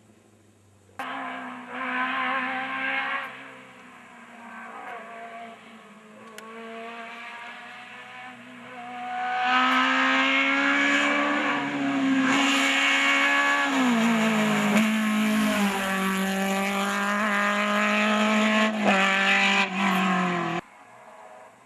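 A rally car engine roars up close, revving hard and shifting gears as it races past.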